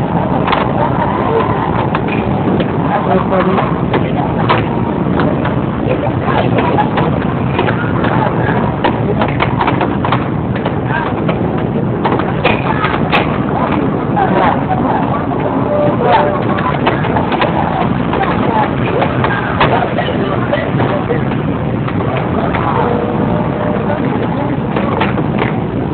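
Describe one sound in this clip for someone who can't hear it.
Air hockey pucks clack against mallets and table rails.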